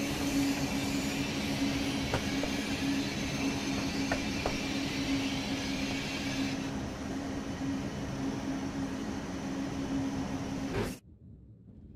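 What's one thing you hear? A train rumbles along the tracks with a steady, loud hum.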